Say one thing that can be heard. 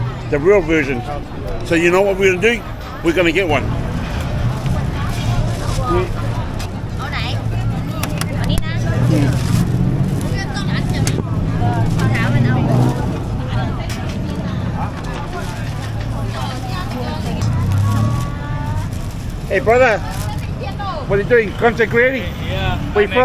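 A busy crowd murmurs steadily outdoors.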